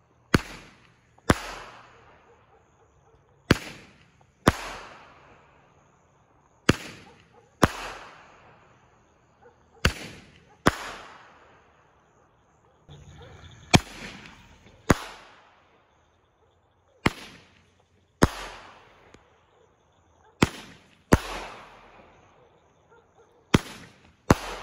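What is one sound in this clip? Fireworks launch with sharp pops, one after another.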